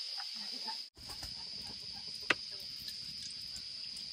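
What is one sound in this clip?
Oil sizzles in a hot pan.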